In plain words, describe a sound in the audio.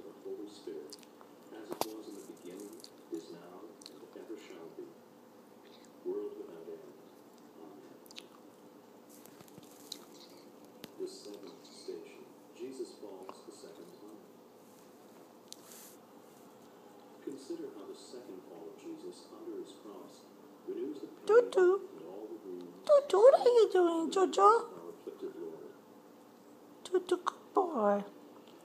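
A small dog growls softly while playing.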